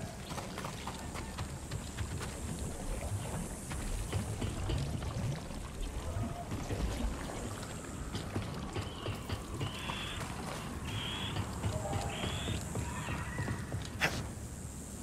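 Footsteps crunch on gravel and clang on metal grates.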